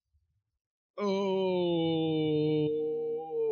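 A young man lets out a long, drawn-out cry close to a microphone.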